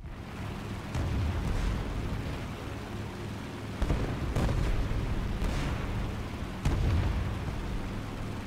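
Guns fire in bursts with loud booms.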